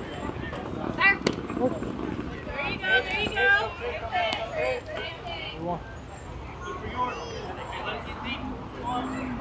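Young voices shout and cheer across an open field.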